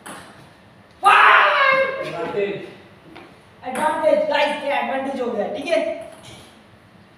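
A young man shouts and cheers with excitement.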